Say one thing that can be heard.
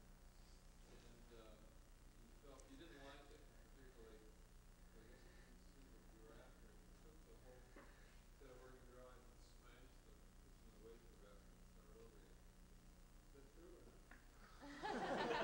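A man speaks quietly and calmly, heard faintly through an old, hissy recording.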